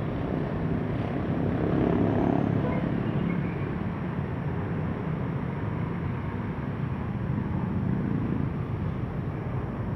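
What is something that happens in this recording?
A motorcycle engine drones as it rides past.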